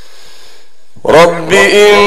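A man chants loudly through a microphone, with a slow and drawn-out melody.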